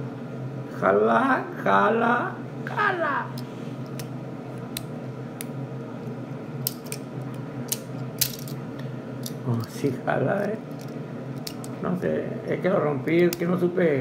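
A small plastic toy car clicks and rattles as it is handled.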